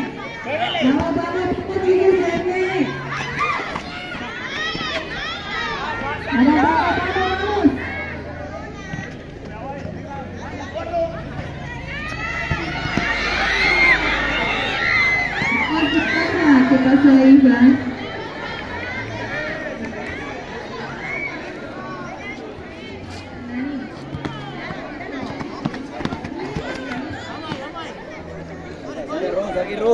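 A crowd of young people cheers and shouts outdoors.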